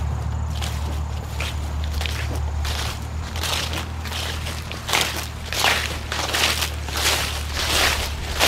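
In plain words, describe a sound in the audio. Footsteps crunch through dry leaves and grass.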